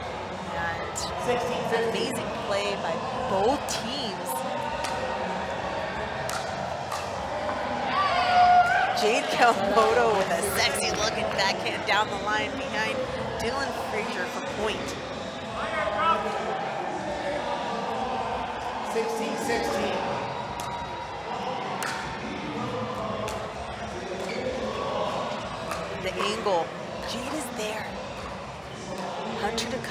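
A crowd murmurs and cheers in an echoing hall.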